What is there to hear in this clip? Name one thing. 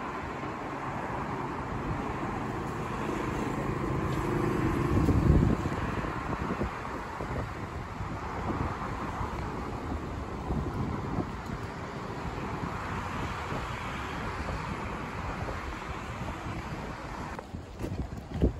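A monorail train rumbles and hums past on an elevated track.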